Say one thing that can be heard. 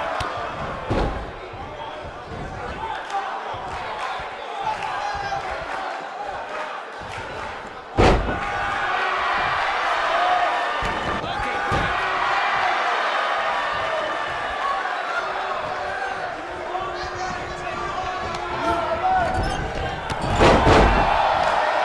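Bodies slam hard onto a wrestling mat with loud thuds.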